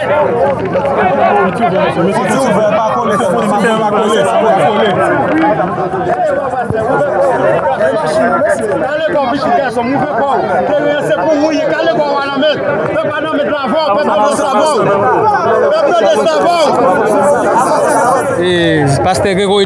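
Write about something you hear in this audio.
A large crowd of men talks and shouts loudly close by.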